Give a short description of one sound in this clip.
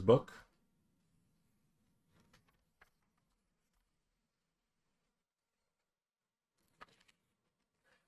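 Paper pages rustle as a magazine's pages are turned.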